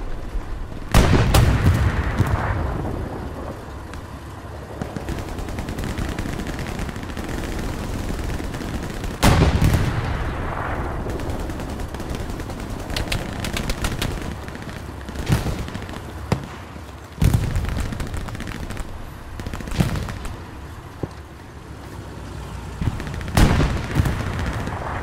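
Loud explosions boom and rumble nearby, echoing off buildings.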